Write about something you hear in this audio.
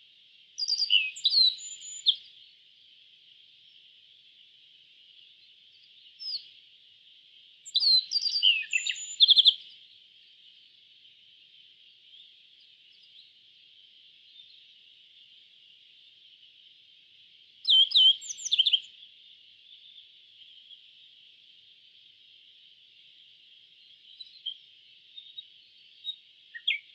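A small songbird sings short bursts of high, sharp chirps and trills, close by.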